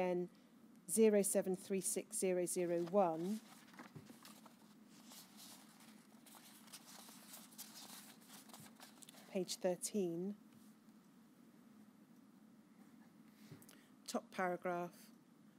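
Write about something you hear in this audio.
A woman speaks calmly and haltingly into a microphone.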